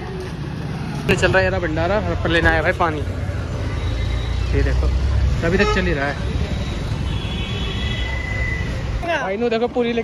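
Motor traffic rumbles on a busy street.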